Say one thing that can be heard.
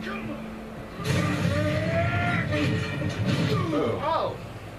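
A car crashes and tumbles with a loud, rumbling roar.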